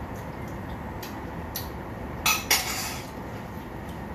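A metal utensil clatters and scrapes against a cooking pan.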